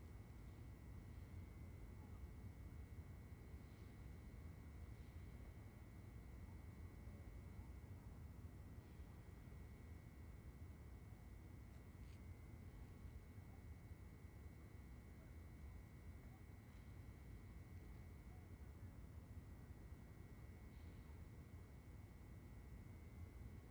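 Footsteps shuffle slowly on a hard floor.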